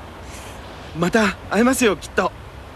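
A man speaks warmly close by.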